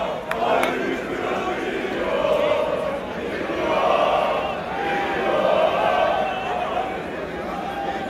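A large crowd of men chants loudly together outdoors.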